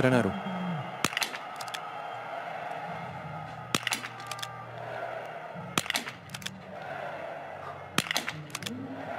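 Rifle shots crack one at a time, a few seconds apart.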